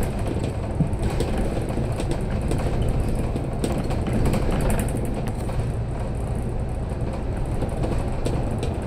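An engine rumbles steadily.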